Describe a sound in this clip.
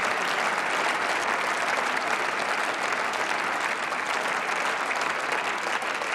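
A large crowd applauds steadily in a big hall.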